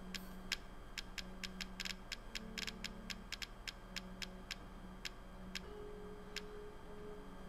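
Menu selection ticks click rapidly as a list scrolls.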